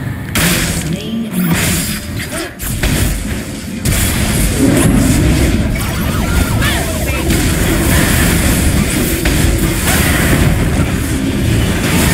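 Fantasy battle sound effects of spells and blows clash rapidly.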